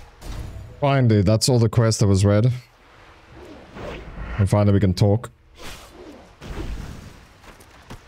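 Weapon blows land with sharp thuds.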